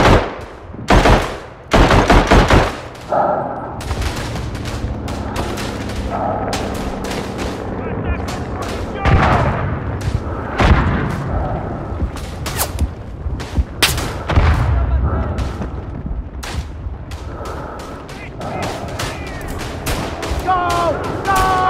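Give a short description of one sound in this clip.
Distant gunfire and explosions rumble on throughout.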